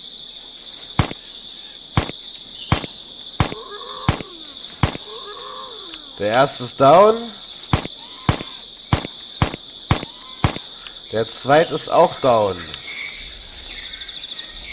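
A rifle fires single shots in short bursts.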